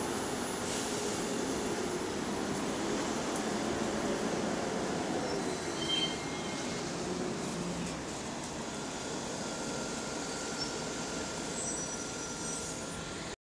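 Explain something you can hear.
Traffic hums steadily on a busy street outdoors.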